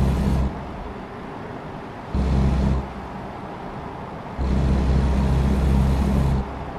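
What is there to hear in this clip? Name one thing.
Windshield wipers sweep back and forth.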